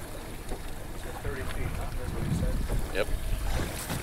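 A fishing reel clicks and ticks.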